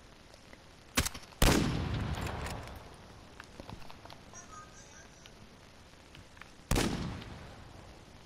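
A sniper rifle fires loud shots that echo away.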